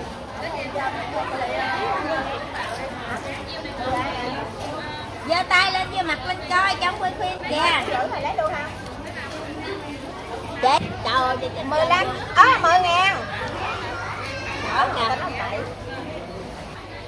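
A woman talks nearby.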